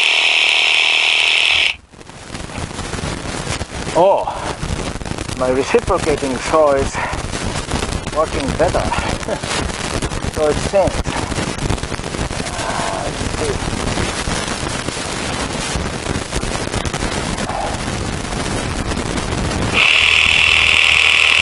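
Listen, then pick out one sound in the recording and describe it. A chainsaw engine runs and revs up close.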